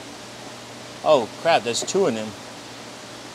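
A man speaks briefly up close.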